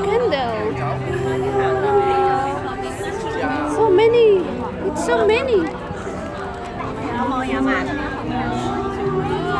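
A crowd of men, women and children chatter all around.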